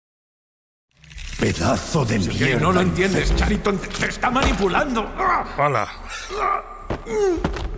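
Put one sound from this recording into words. A man speaks tensely and with animation, close by.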